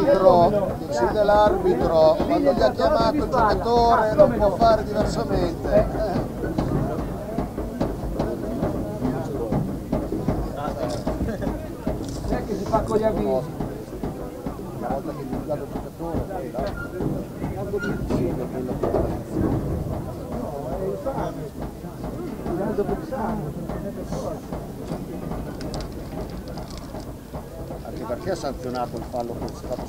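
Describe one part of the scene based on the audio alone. Women call out to each other across an open field.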